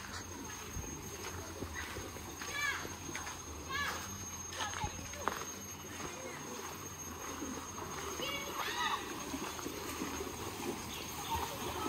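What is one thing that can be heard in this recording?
Water flows gently in a shallow river.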